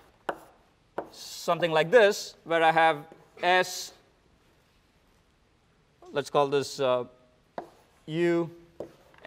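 A man speaks calmly in a lecturing manner.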